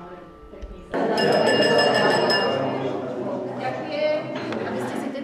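A crowd chatters in an echoing hall.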